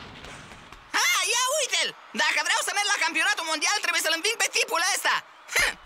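A young boy talks cheerfully and with animation.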